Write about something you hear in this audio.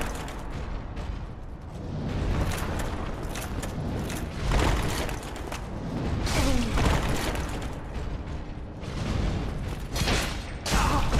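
Metal armour clanks and scrapes as armoured warriors move and fight.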